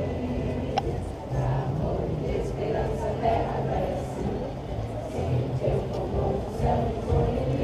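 A crowd of young people chatters and cheers.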